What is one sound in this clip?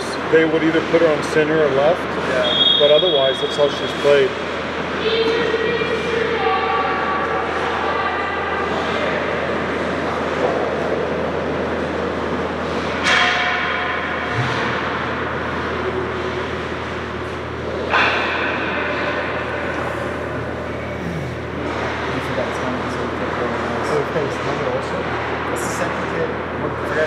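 Ice skates scrape and carve across ice.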